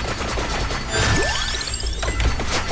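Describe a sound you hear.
A video game chime rings out.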